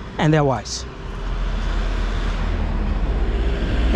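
A car drives past on a nearby road.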